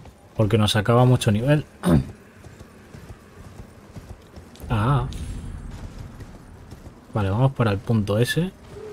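A horse gallops, its hooves thudding on the ground.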